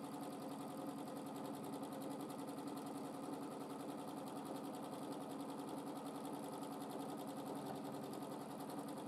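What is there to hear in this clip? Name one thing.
A sewing machine hums and stitches rapidly and steadily.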